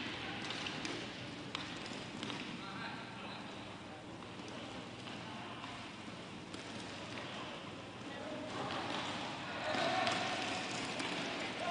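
Roller skate wheels rumble on a hard floor.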